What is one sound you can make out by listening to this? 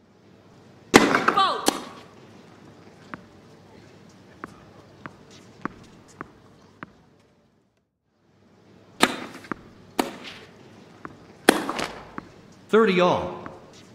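Tennis balls are struck sharply with rackets and bounce on the court.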